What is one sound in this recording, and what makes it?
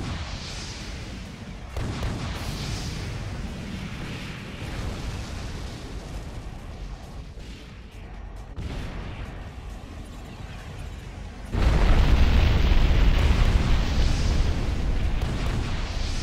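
Gunfire crackles in bursts.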